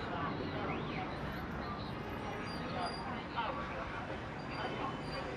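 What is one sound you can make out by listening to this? Traffic hums steadily outdoors on a busy street.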